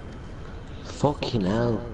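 A man speaks briefly with animation, close to a microphone.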